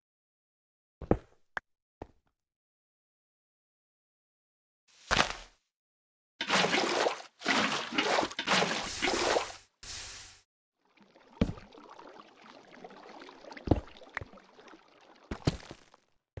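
Pickaxe blows crack and break stone blocks with sharp knocks.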